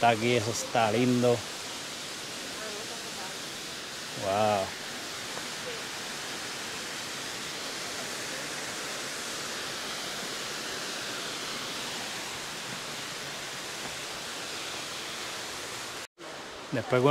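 Water pours steadily over a weir.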